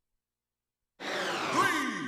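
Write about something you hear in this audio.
Video game music and sound effects start up.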